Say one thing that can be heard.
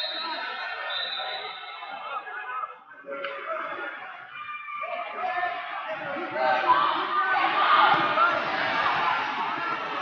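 Wrestling shoes squeak on the mat.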